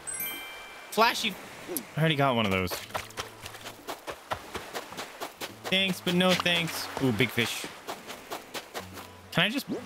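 Quick footsteps patter on sand.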